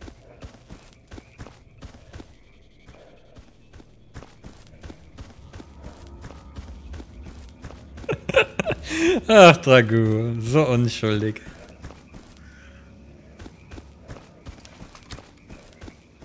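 Footsteps crunch steadily on grass and gravel.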